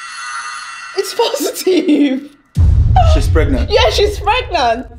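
A young woman talks with animation and laughs close by.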